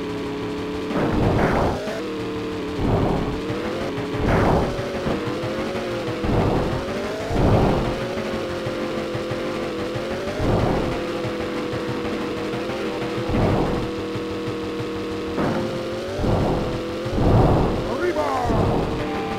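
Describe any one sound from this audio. Tyres thud and crunch in repeated bursts as a game truck bounces over rough ground.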